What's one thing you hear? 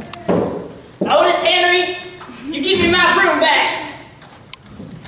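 A man calls out loudly and drawls, heard through loudspeakers in a hall.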